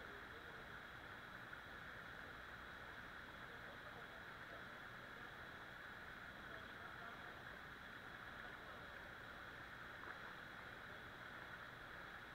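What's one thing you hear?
A waterfall pours steadily into a pool.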